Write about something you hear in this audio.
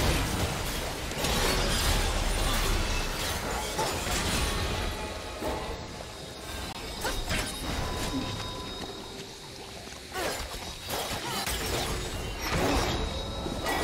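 Magic spells burst and whoosh in a fight.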